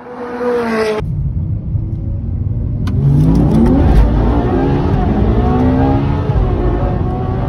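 A sports car engine revs hard and rises in pitch through gear changes, heard from inside the car.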